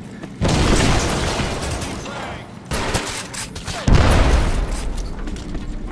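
Gunshots blast loudly and echo off hard walls.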